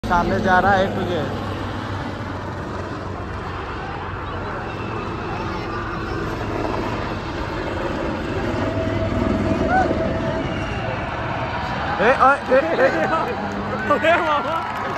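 A helicopter engine drones steadily overhead.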